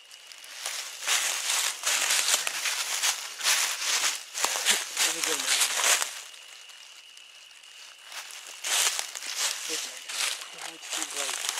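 Dry leaves crunch and rustle underfoot in bursts.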